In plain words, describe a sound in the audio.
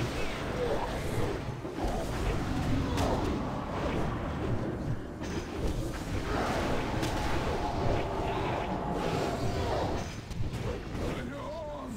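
Spells and weapon blows crash and clatter in a dense battle.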